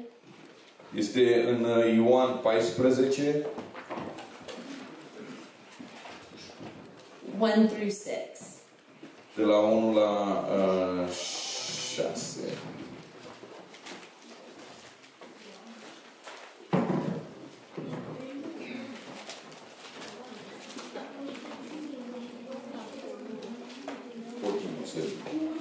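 A man speaks into a microphone over loudspeakers in a room.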